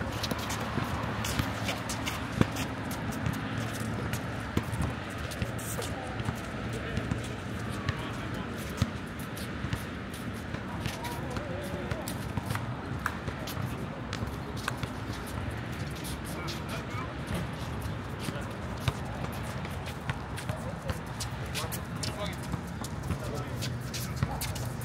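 Sneakers squeak on the court surface.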